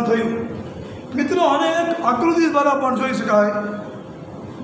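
A middle-aged man speaks calmly, close by.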